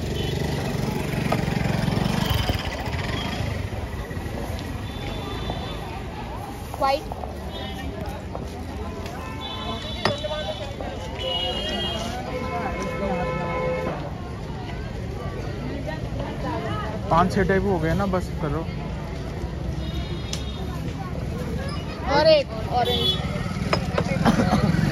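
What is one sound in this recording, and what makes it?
A crowd murmurs in the background of a busy outdoor street.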